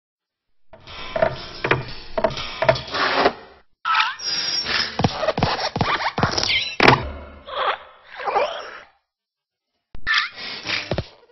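A small metal desk lamp hops and lands with springy thumps.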